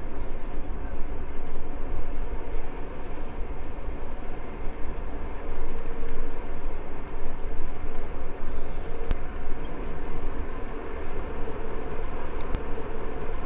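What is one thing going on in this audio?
Wind roars and buffets steadily, outdoors.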